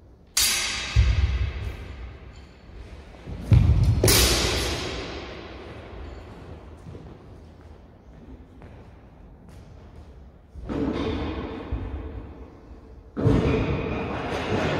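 Swords clash sharply and ring out in a large echoing hall.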